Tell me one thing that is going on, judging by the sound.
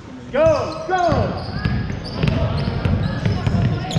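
A basketball bounces on the wooden floor.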